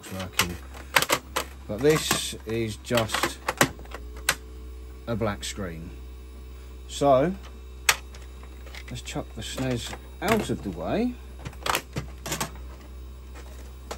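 A plastic game cartridge clatters as it is pulled out and pushed into a console.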